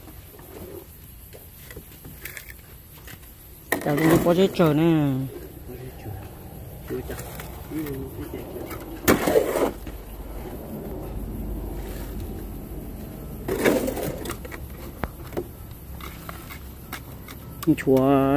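A shovel scrapes and slaps wet concrete.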